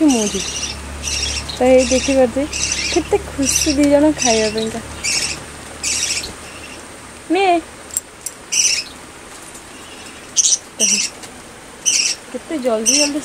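A small bird chirps repeatedly in short, sharp bursts close by.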